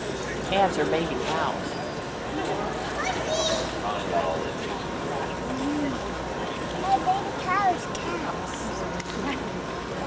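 Cattle low and moo in a large echoing arena.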